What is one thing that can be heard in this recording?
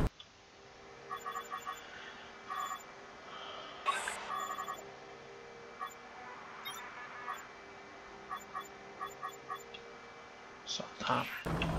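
Short electronic blips beep as menu items are selected.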